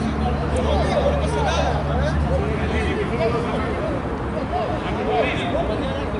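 Young people shout and chatter in the distance outdoors.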